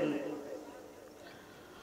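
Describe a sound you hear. A man speaks forcefully into a microphone, his voice ringing out over loudspeakers and echoing away.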